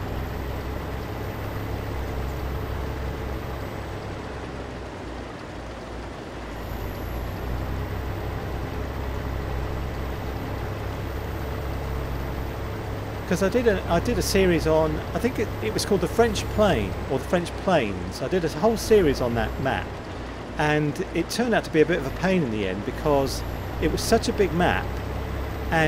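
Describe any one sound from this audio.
A heavy machine's engine drones steadily.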